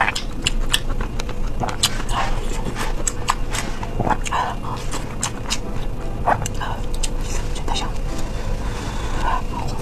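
Chopsticks click against a bowl.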